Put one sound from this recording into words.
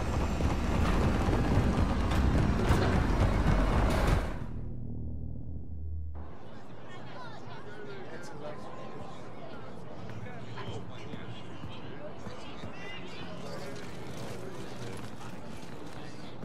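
Armoured soldiers' boots thud as they run.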